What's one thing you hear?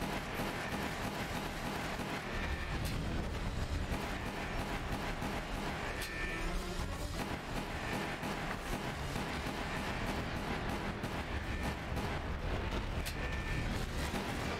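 Game gunfire bangs repeatedly.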